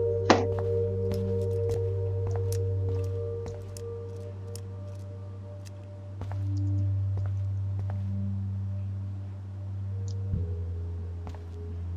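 A lock rattles and clicks as it is picked.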